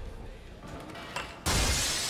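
A skateboard grinds along a metal edge.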